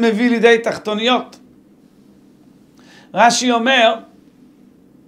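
A man speaks calmly and close to a microphone, reading out in short phrases.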